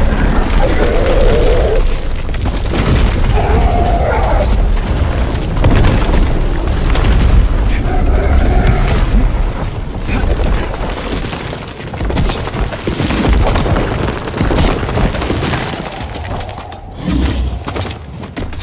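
Rocks crash and rumble as dust billows up.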